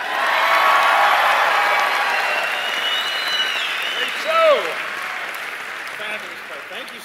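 A large audience cheers and applauds in an echoing hall.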